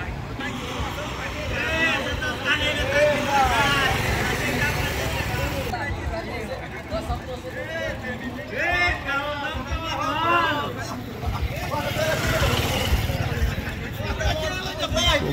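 Men and women shout and cheer excitedly nearby.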